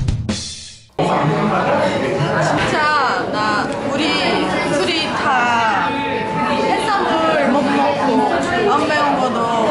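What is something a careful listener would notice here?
A young woman speaks with animation up close.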